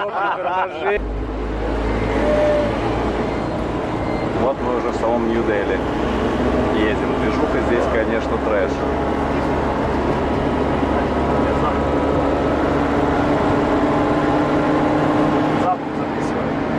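A car engine hums steadily while driving on a road.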